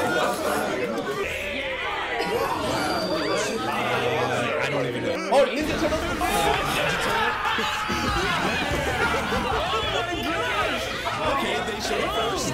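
An anime theme song plays with singing and rock instruments.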